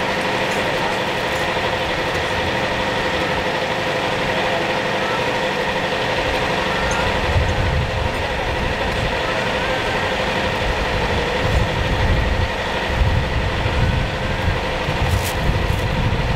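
Several men talk with one another nearby.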